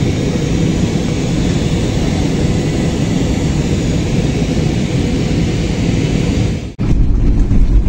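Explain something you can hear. Jet engines roar steadily during flight.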